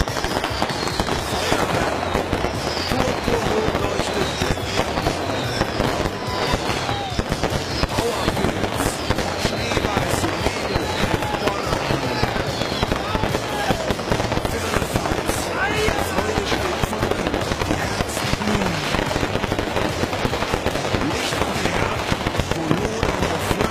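Fireworks crackle and bang loudly and continuously overhead.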